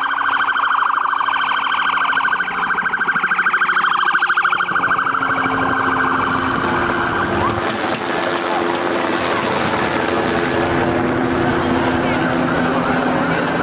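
A crowd of protesters chants loudly outdoors.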